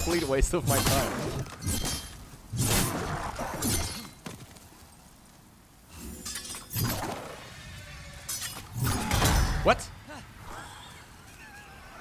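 Swords clash and clang in a fight.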